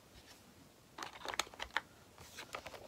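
Plastic thread bobbins rattle and click in a box as fingers sort through them.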